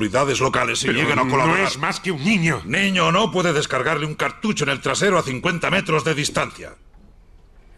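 A man speaks firmly close by.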